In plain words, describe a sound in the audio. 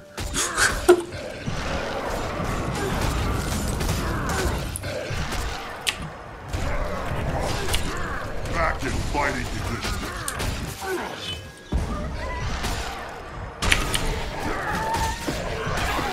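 Sword blows strike in a fight.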